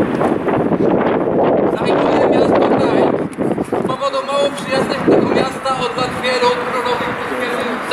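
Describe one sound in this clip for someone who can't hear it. A man reads aloud in a loud, declaiming voice outdoors.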